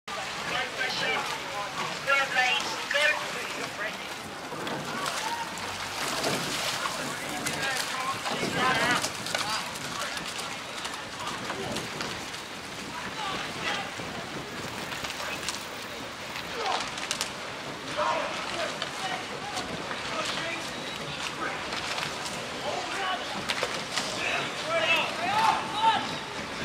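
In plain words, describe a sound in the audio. Oars splash rhythmically in the water.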